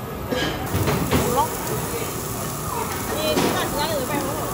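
Metal tongs clack against the grill.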